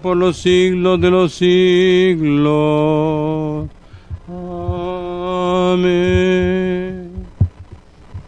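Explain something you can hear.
An elderly man chants in a slow, sustained voice.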